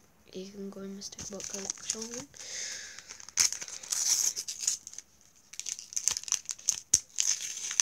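Sticker packets crinkle and rustle in a boy's hands.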